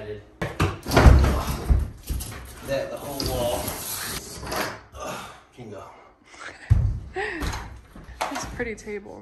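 Drywall panels crack and thud as a young man wrenches them loose.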